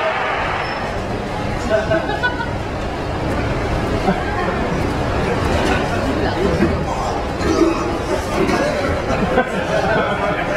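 Men talk and laugh nearby.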